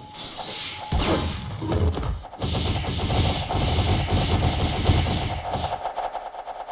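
Rapid punching impacts thud in a flurry during a game fight.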